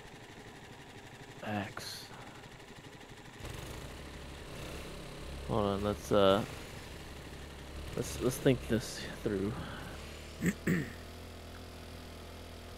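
Motorcycle engines rumble steadily as the bikes ride along.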